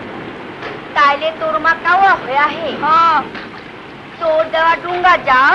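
A woman speaks up nearby.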